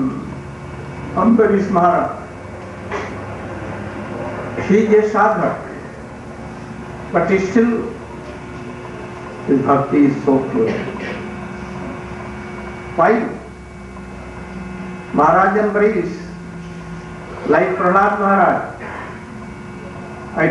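An elderly man speaks slowly and calmly into a microphone, with long pauses between phrases.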